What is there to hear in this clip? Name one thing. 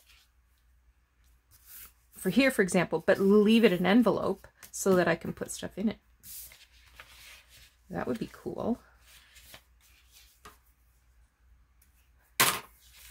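Sheets of paper rustle and slide against each other.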